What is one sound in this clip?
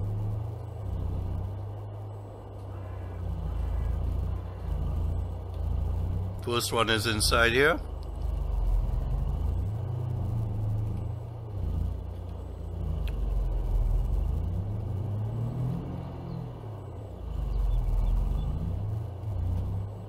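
A pickup truck engine hums low and changes pitch as it speeds up and slows down.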